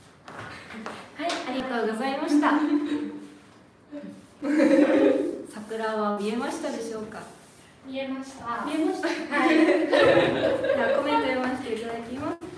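A young woman speaks cheerfully close by.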